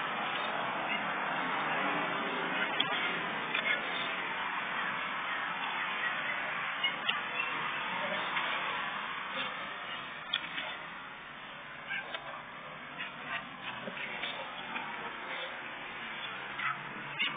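Two young boys scuffle and tumble on grass.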